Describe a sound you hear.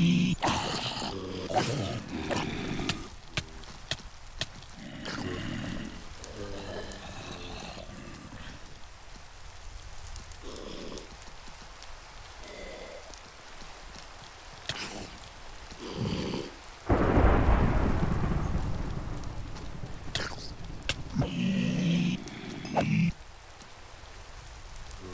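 Rain falls steadily.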